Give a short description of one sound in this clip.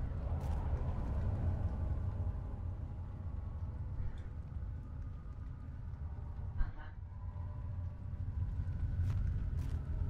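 A young man talks quietly close to a microphone.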